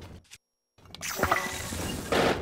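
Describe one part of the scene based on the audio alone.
A crackling magical blast bursts loudly.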